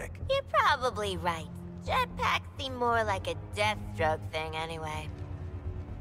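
A young woman speaks playfully and close.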